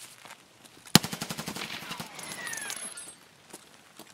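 Rapid gunfire bursts out at close range.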